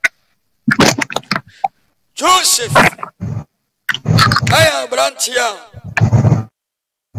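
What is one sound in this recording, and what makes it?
A man preaches with animation.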